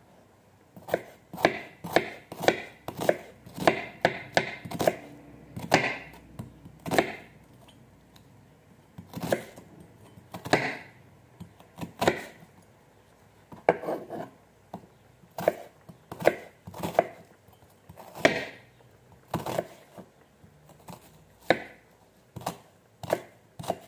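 A knife cuts through onion and taps on a wooden board in short, uneven bursts.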